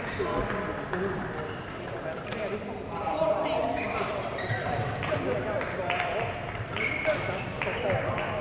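A crowd of men and women chatter in a large echoing hall.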